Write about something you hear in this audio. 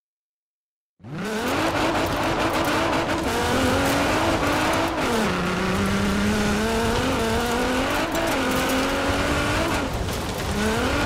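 A sports car engine revs loudly, rising and falling in pitch.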